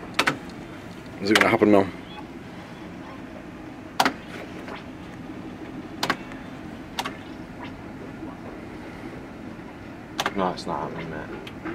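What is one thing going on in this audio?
Buttons on a slot machine click as they are pressed.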